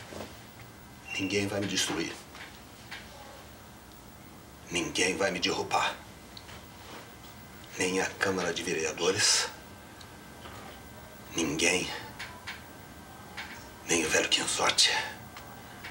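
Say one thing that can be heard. A man speaks sternly and with emphasis, close by.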